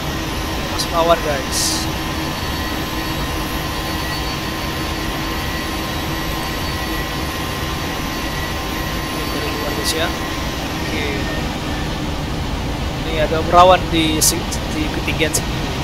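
A jet airliner's engines roar steadily.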